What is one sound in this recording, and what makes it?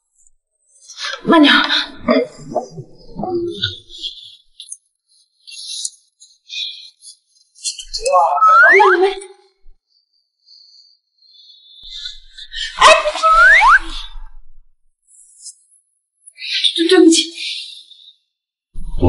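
A young woman speaks nearby, exclaiming and apologising.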